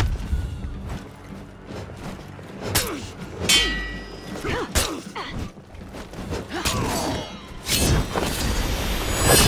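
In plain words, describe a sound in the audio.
Swords clash and ring with sharp metallic hits.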